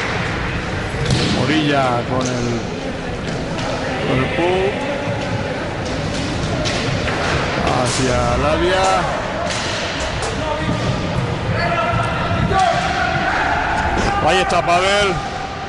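Sticks clack against a ball.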